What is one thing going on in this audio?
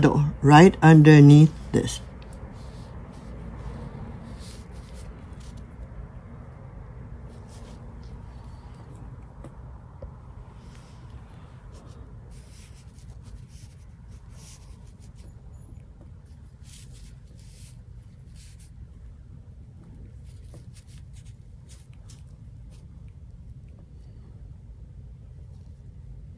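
A brush dabs and strokes softly on paper.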